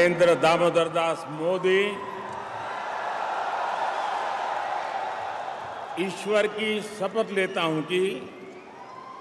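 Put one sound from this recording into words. An elderly man speaks slowly and formally into a microphone.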